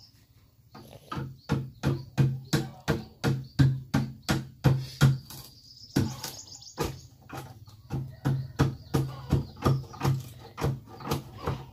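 A hand tool scrapes and knocks rapidly against wood in a steady rhythm.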